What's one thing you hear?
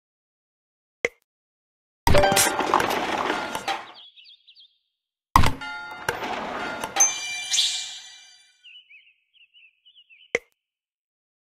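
A game piece clicks softly into place.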